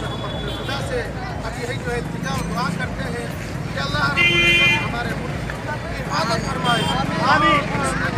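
A crowd of men talk and shout together outdoors.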